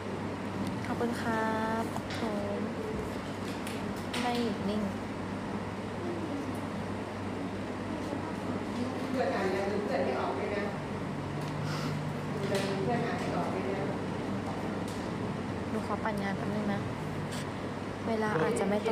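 A young woman talks casually, close to a phone microphone.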